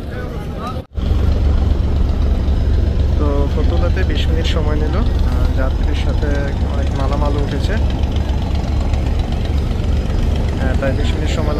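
A large boat engine rumbles low and steadily.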